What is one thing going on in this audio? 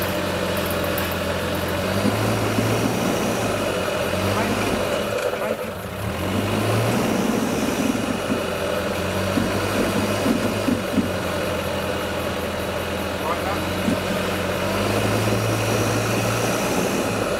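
An off-road vehicle's engine idles and revs unevenly as it climbs over rocks.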